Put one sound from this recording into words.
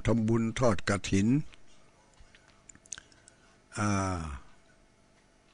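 An elderly man chants slowly into a microphone.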